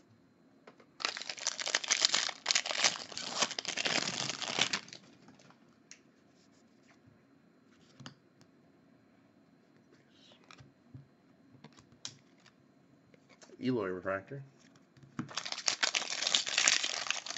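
A foil card wrapper crinkles and tears open close by.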